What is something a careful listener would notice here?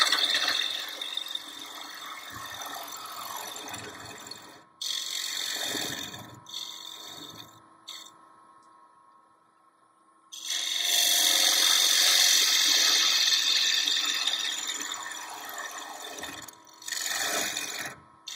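A gouge scrapes and hisses against spinning wood.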